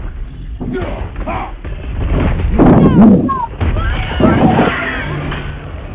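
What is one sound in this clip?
A huge stone creature stomps and crashes heavily.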